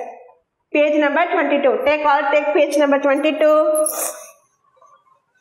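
A woman speaks loudly in a sing-song voice, close by.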